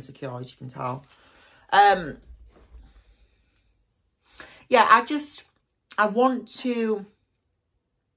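A young woman speaks expressively up close, in short bursts with pauses.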